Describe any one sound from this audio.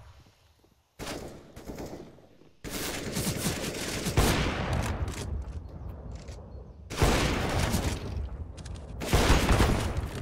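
A sniper rifle fires loud, sharp shots that echo away.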